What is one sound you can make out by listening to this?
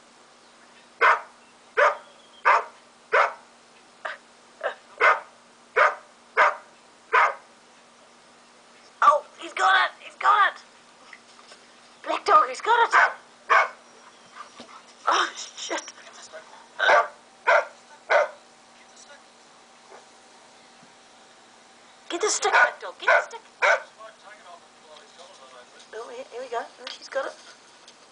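A small dog barks sharply, again and again, close by.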